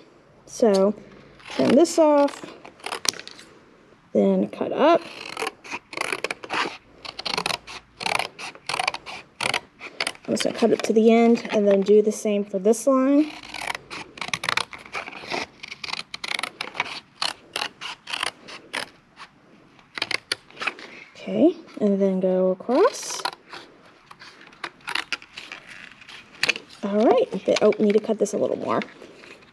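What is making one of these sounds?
Scissors snip and crunch through thin cardboard.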